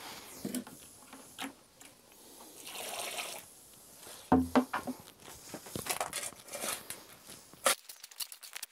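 A shovel scrapes and digs into loose soil.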